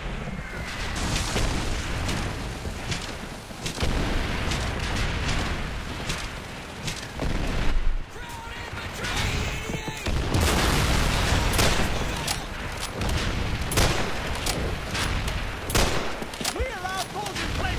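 Rifle shots crack again and again.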